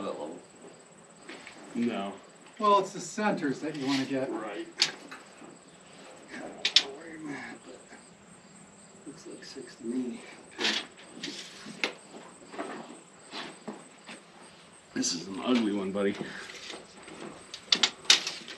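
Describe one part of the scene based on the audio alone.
A second man answers in a relaxed voice.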